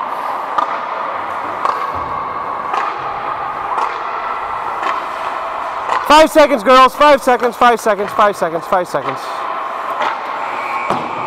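Skate blades scrape and carve across ice.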